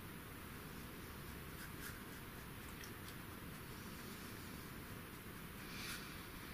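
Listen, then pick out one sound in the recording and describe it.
A paintbrush softly dabs and brushes against paper.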